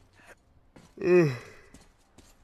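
A young man lets out a loud, falling yell close to a microphone.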